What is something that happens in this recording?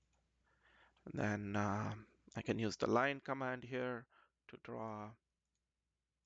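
A man speaks calmly into a microphone, as if on an online call.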